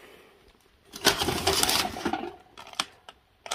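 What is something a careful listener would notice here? Cardboard and paper rustle as hands sort through a box.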